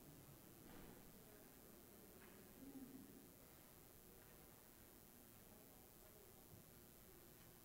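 Men and women murmur softly in a large, echoing hall.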